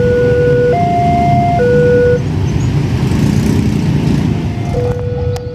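Motorbike engines idle and rumble close by.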